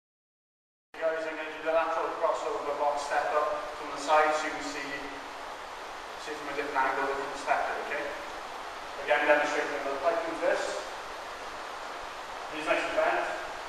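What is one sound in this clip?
A man speaks calmly and clearly to listeners nearby.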